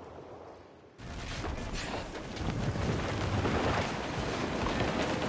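Cannons fire with heavy booms.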